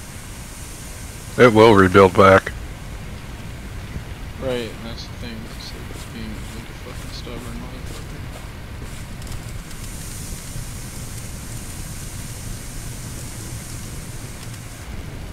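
A large fire roars steadily.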